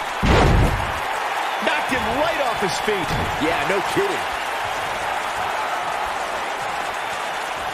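A large crowd roars and cheers steadily in an echoing arena.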